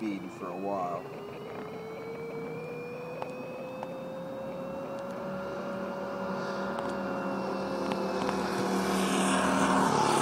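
A small engine drones, growing louder as it approaches.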